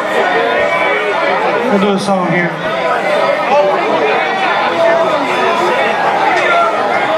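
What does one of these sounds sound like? Acoustic guitars and a mandolin play a lively tune together.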